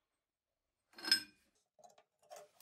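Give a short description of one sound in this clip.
A metal vise clanks as it is tightened.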